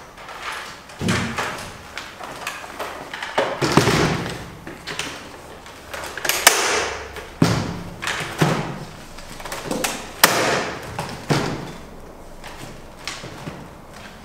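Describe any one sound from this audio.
A device thumps and clatters as a man sets it down on a table.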